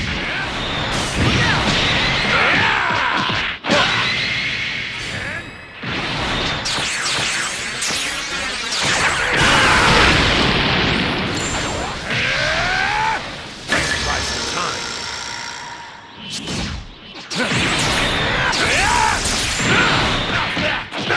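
Energy blasts and punches crash loudly in a fast fight.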